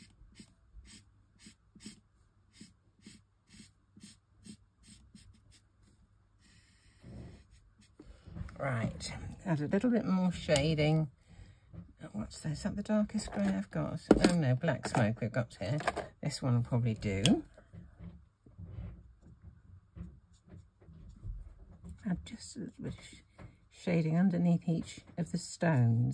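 An alcohol marker scratches in short strokes on card.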